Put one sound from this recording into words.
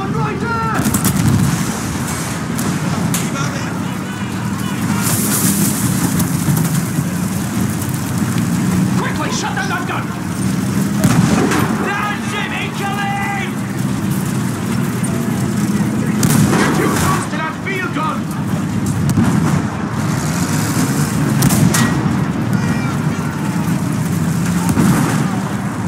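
Shells explode with loud blasts nearby.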